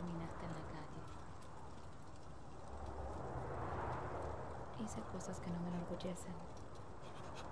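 A young woman speaks softly and quietly, close by.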